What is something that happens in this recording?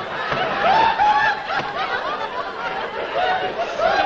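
Men laugh heartily.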